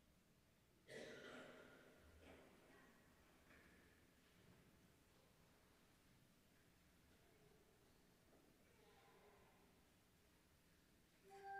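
A choir sings softly in a large echoing hall.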